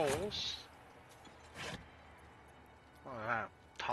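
A wooden chest lid thumps open.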